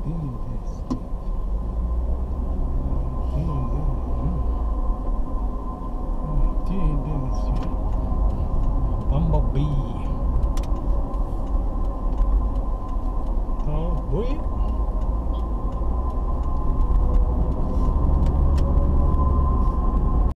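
Tyres rumble over the road.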